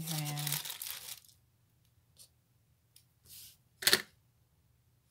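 Thin plastic sheets rustle and crinkle under a hand.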